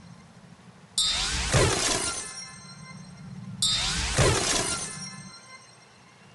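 A rushing whoosh with bright chimes sweeps through, twice.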